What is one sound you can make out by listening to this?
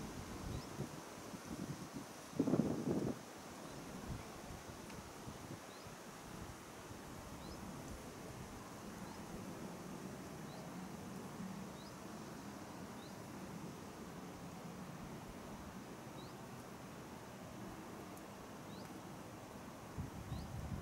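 Wind rumbles and gusts across the open outdoors.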